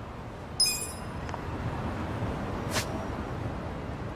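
A short electronic menu blip sounds.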